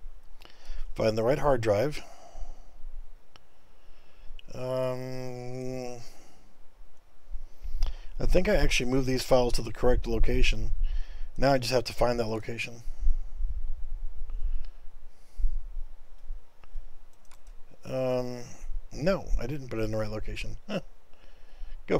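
A middle-aged man talks calmly into a headset microphone, close by.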